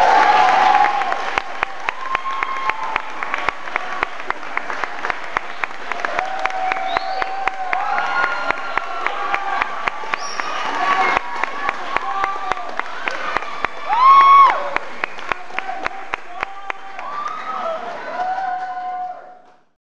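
A woodwind ensemble plays a bouncy, lively tune in a large hall.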